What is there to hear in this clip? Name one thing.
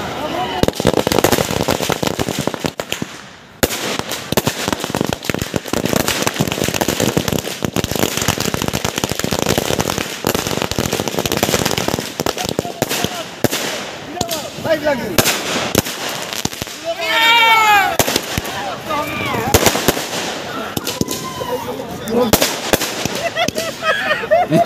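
Firecrackers bang sharply and repeatedly.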